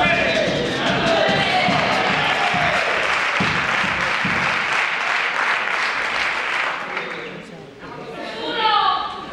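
Guitars strum along.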